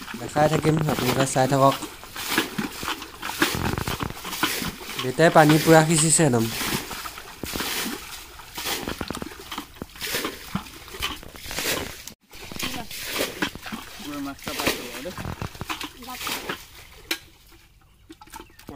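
A boy bails water from shallow muddy water with a plastic container, splashing it out.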